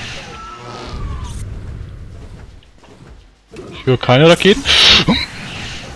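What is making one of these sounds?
A plasma gun fires bursts of energy.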